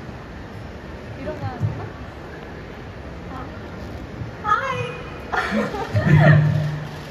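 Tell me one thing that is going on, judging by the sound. A young woman speaks into a microphone over loudspeakers.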